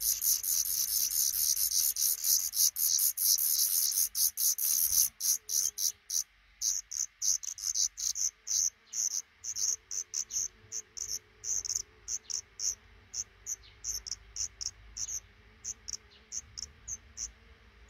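Baby birds cheep rapidly and shrilly, then settle into quieter, spaced-out peeps.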